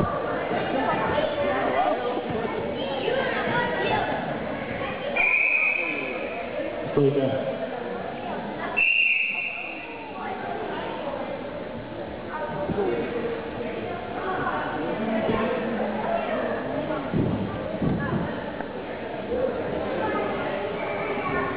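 Children and adults chatter and call out in an echoing hall.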